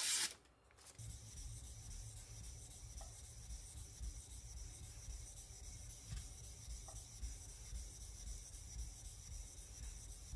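A kitchen knife grinds back and forth on a whetstone.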